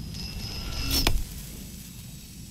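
A metal gate clangs.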